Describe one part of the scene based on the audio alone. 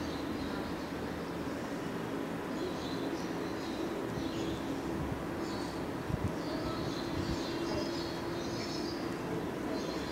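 A metal crochet hook softly rubs and clicks against yarn.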